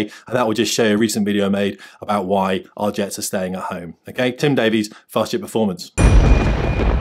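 A man speaks with emphasis close to a microphone.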